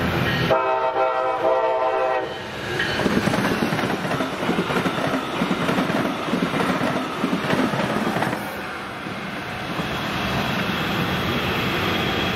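A passing train rumbles and clatters along the tracks.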